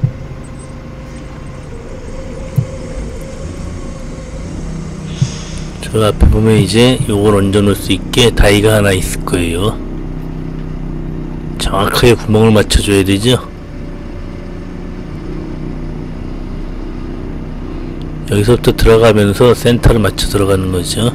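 A diesel forklift engine runs as the forklift drives forward.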